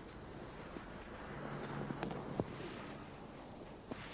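A man sniffs closely.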